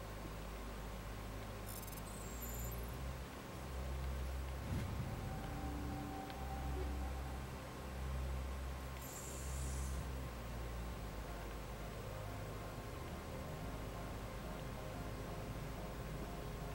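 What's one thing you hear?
A low electronic drone hums steadily.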